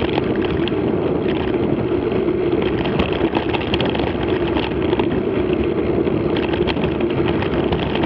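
Tyres crunch and rattle over a bumpy dirt track.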